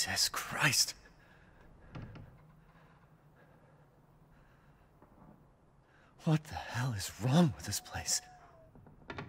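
A middle-aged man speaks in a shaken, frightened voice.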